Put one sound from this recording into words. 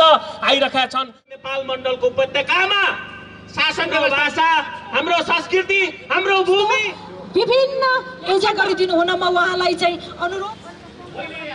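A man speaks forcefully into a microphone through loudspeakers.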